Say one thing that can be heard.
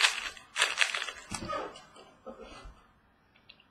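A plastic wrapper crinkles as hands handle it.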